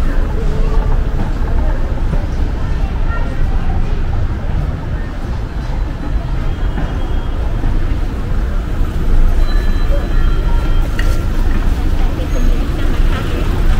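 A car drives slowly past on cobblestones.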